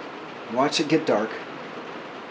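An older man speaks briefly and cheerfully, close by.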